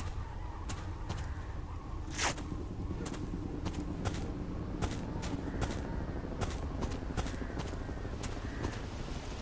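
Footsteps crunch steadily on leaves and dirt.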